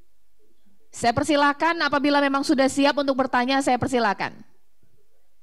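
A woman speaks with animation into a microphone, heard through an online call.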